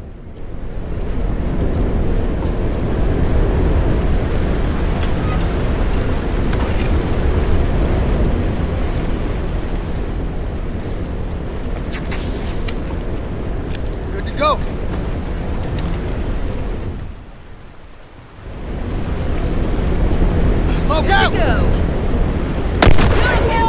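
Footsteps thud quickly on a metal grating.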